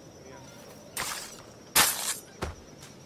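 A blade strikes with sharp thuds.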